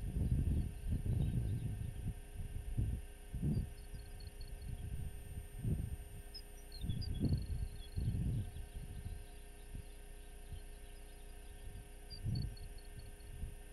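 Wind gusts roar across open ground.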